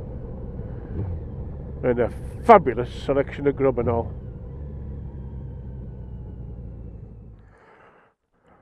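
A motorcycle engine rumbles steadily and slows to a stop.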